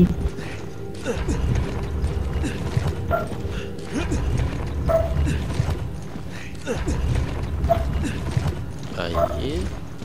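A heavy stone statue scrapes and grinds as it is pushed across a stone floor.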